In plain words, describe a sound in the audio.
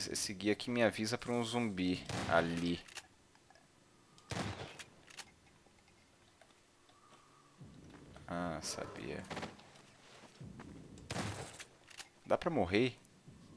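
A shotgun fires loud, booming shots with an echo.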